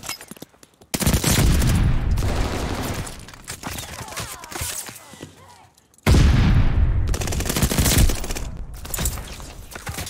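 Guns fire in loud, rapid bursts.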